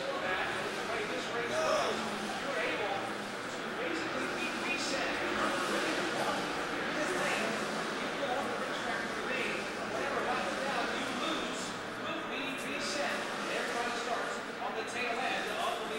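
Race car engines roar in the distance, muffled through glass.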